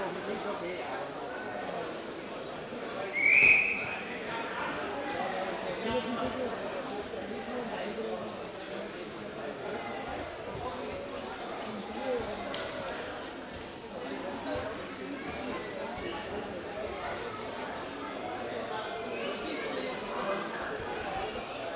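A crowd murmurs and chatters in a large echoing hall.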